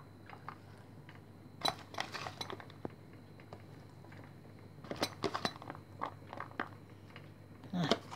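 Chopped vegetables drop lightly into a metal bowl.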